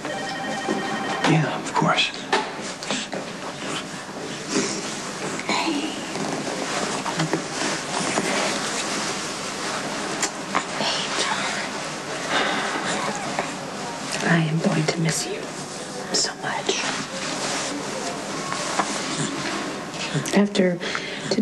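A woman speaks softly and tenderly close by.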